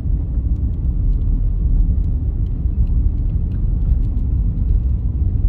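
Small stones tick against the underside of a car.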